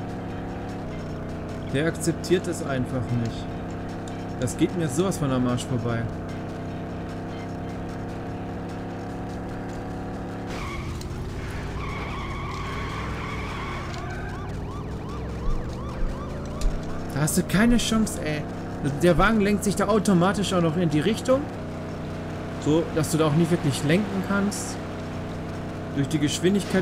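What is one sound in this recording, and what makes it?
A racing car engine roars at high speed, drops low and then revs back up.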